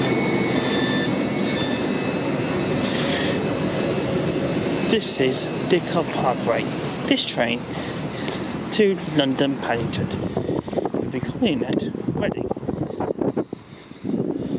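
A passing train rushes by close with a loud rumble and clatter of wheels.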